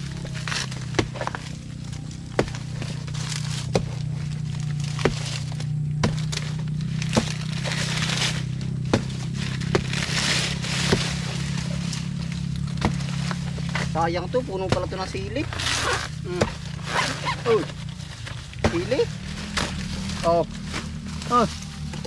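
A machete chops repeatedly into a soft plant stalk.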